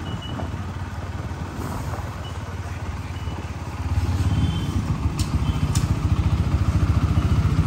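A motorcycle engine idles with a low, pulsing rumble close by, growing louder partway through.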